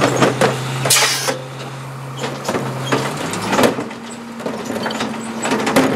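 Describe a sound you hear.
A cart tipper lifts a plastic wheeled cart and bangs it against the hopper.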